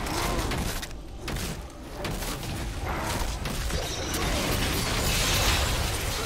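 Magic spells burst and crackle in a video game battle.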